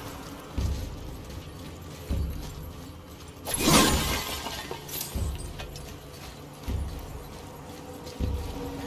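Heavy footsteps thud slowly on stone.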